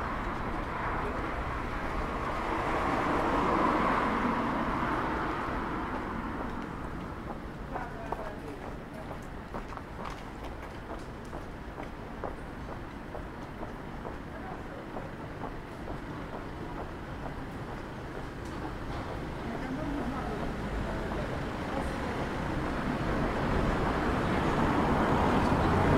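Traffic rumbles past on a nearby street, swelling and fading.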